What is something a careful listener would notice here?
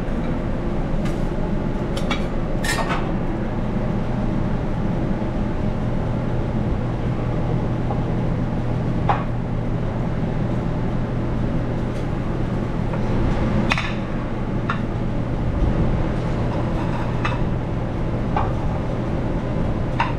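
An exhaust hood hums steadily.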